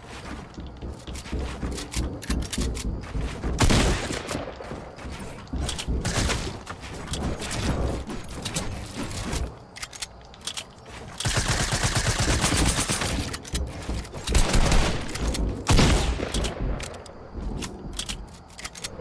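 Rapid clicks and wooden thuds sound in quick bursts.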